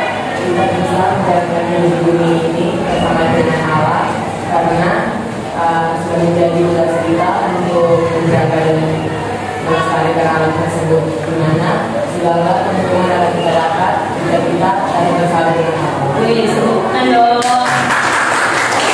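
A man speaks to a group indoors.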